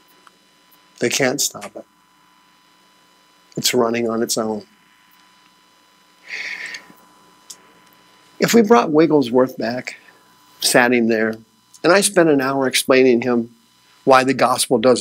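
A middle-aged man lectures calmly through a microphone.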